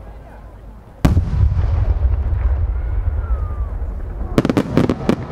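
A firework bursts with a loud boom that echoes away.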